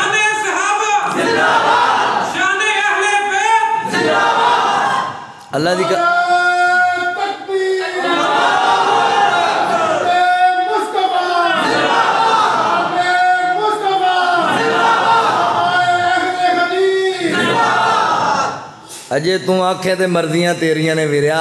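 A man speaks with animation, almost chanting, through a microphone and loudspeakers.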